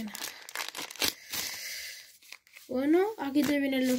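Paper cards rustle as hands shuffle through them.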